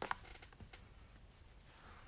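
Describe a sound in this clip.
A bone folder scrapes along paper.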